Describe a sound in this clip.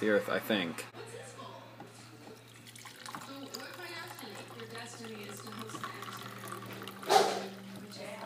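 Coffee trickles into a mug.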